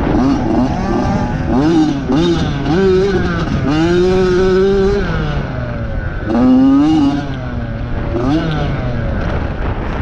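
Wind buffets loudly past the rider.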